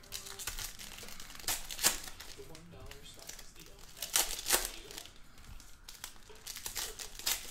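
A foil wrapper crinkles and tears in someone's hands.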